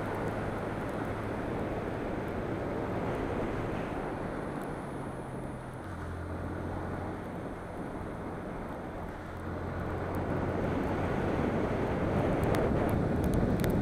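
A motor scooter engine hums as it rides along a road.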